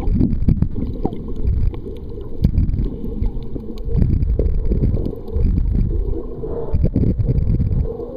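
Water rushes and gurgles in muffled bursts underwater.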